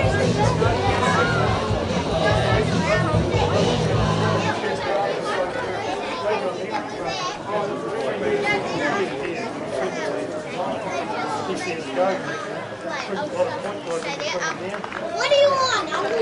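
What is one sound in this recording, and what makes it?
A crowd of spectators chatters and calls out nearby, outdoors.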